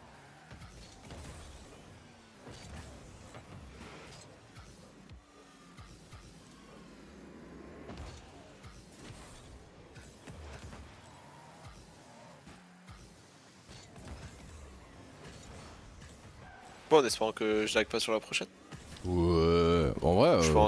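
A ball thuds against cars and walls.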